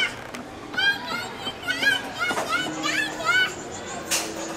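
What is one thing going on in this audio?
A toddler squeals and babbles excitedly close by.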